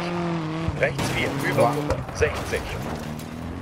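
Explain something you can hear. Tyres skid and scrabble on gravel.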